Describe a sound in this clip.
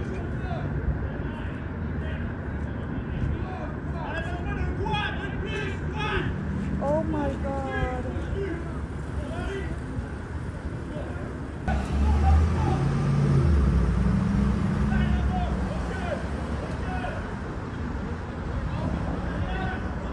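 Men shout commands loudly nearby outdoors.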